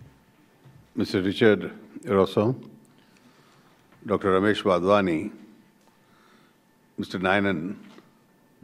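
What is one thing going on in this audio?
A middle-aged man speaks calmly into a microphone, in phrases with pauses.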